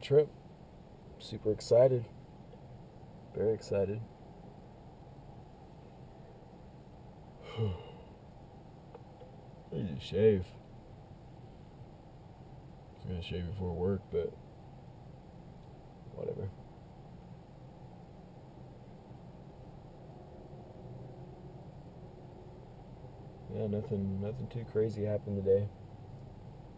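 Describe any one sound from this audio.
A man speaks close by in short, calm phrases with long pauses.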